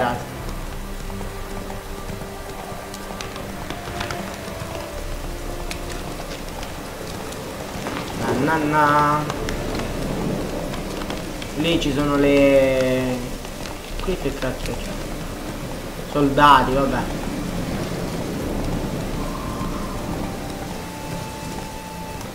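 Horse hooves thud steadily at a gallop.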